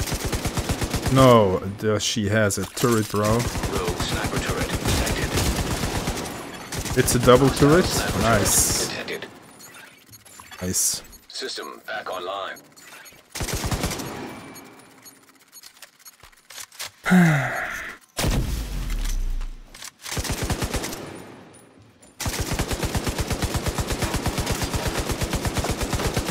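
A machine gun fires in rapid, steady bursts.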